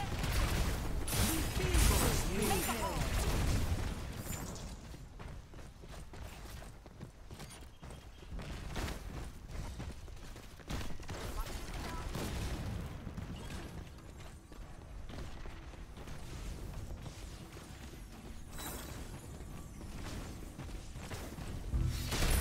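Magic blasts and weapon strikes crash and crackle in a fast fight.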